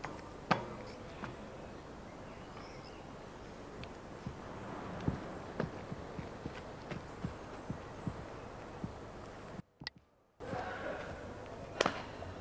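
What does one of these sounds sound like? High heels knock on a wooden bench.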